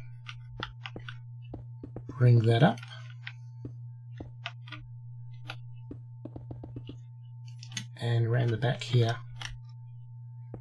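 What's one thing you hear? Blocks click softly as they are placed one after another.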